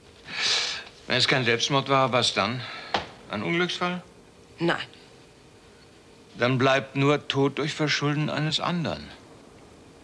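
An older man speaks in a low, earnest voice close by.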